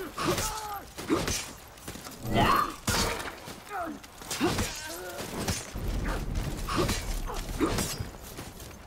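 Metal swords clash and clang repeatedly in a fight.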